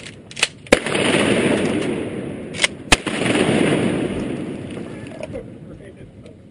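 Shotgun blasts boom and roll away in a long echo outdoors.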